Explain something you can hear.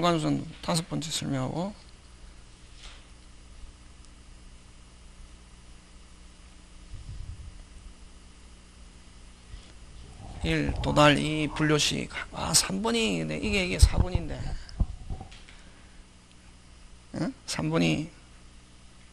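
A middle-aged man speaks through a microphone with animation, in bursts with pauses.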